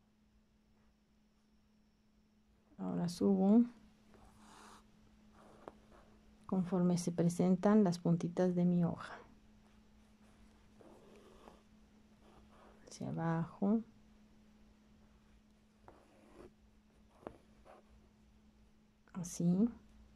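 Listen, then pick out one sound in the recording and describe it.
A needle and thread pull softly through taut cloth.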